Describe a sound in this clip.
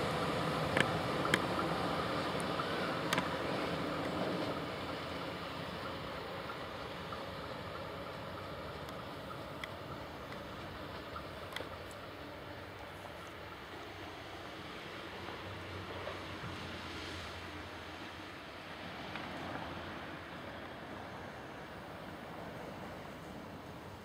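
A train rumbles faintly in the distance.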